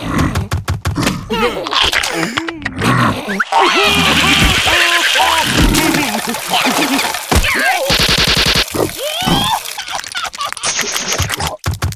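A cartoon creature gibbers in a gruff, squeaky voice.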